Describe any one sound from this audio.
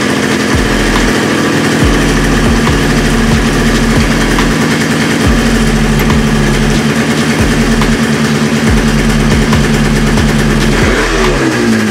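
A motorcycle engine idles close by with a steady, sputtering rumble.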